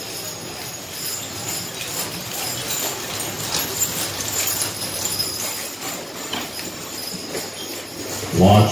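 Carriage wheels roll and creak over sand.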